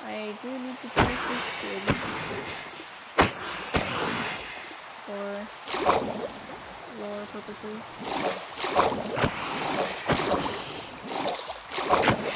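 A sword strikes a squid with sharp thuds.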